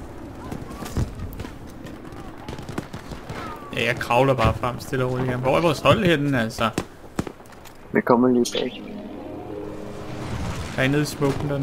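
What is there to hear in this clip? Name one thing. Gunfire cracks sporadically across a battlefield.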